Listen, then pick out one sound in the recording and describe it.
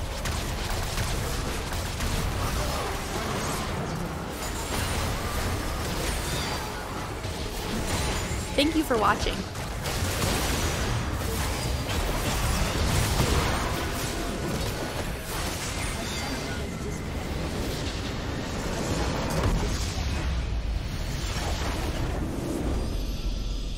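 Magic blasts and clashing blows ring out in a busy battle.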